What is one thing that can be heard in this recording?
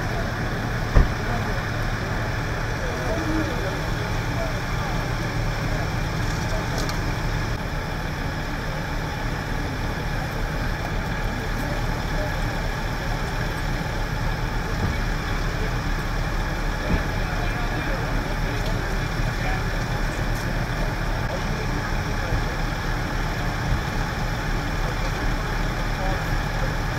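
A large engine idles with a steady low rumble.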